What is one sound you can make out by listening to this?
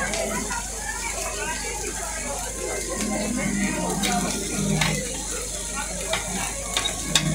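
Onions sizzle steadily on a hot griddle.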